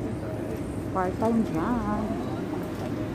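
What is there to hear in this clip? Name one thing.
A man talks on a phone nearby.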